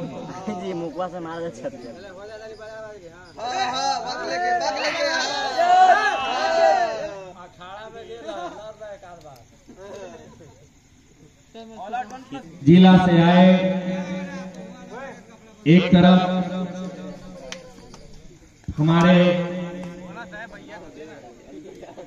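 Young men call out to one another during the game.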